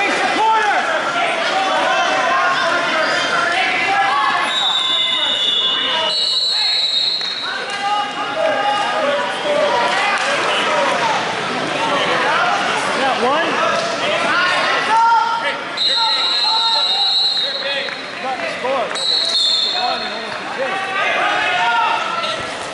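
A crowd of people talk and shout in a large echoing hall.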